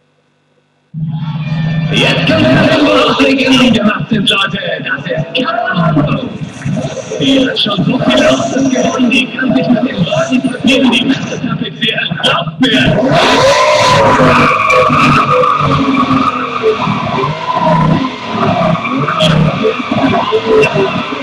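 A racing car engine roars from a television speaker.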